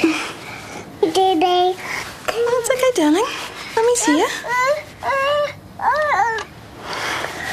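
A small child calls out and whimpers.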